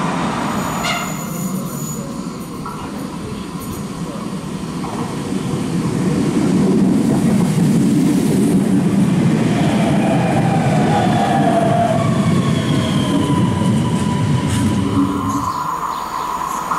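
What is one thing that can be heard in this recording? An electric train rumbles closer and passes by with wheels clattering on the rails.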